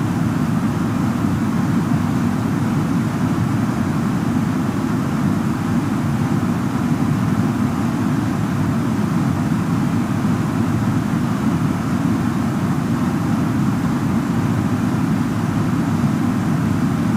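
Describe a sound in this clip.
Jet engines roar in a steady low rumble.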